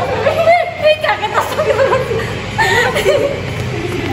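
A young woman laughs loudly close by.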